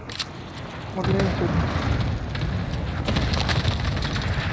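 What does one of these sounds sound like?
Flames roar and crackle after an explosion.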